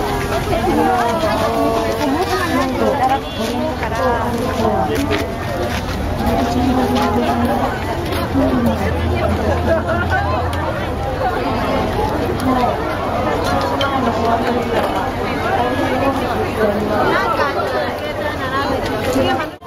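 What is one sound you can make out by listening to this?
A busy outdoor crowd of men and women chatters all around, close by.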